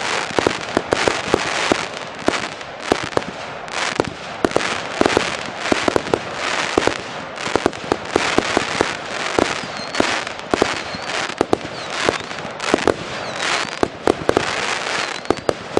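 Firework sparks crackle and hiss.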